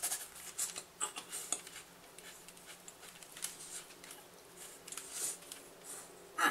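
A man chews food noisily close by, smacking his lips.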